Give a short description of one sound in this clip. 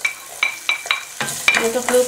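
A wooden spatula scrapes diced food into a pot.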